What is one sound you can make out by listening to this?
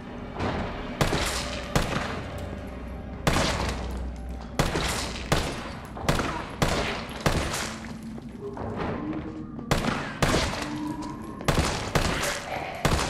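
A pistol fires repeated loud shots in an indoor room.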